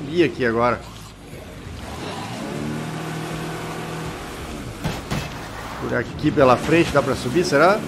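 Water splashes and sprays around tyres.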